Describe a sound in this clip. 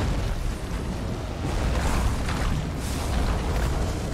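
Flames whoosh and crackle from a fire spell.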